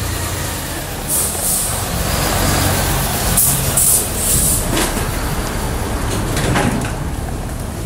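A heavy truck rumbles past nearby.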